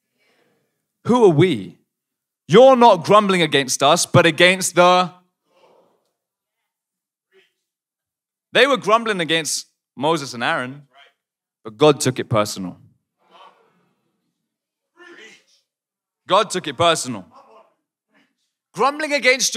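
A young man preaches with animation into a microphone, in bursts with pauses.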